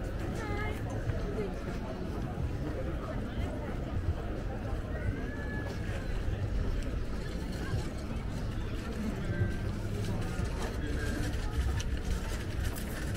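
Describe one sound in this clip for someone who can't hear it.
A crowd of people chatters faintly in the distance.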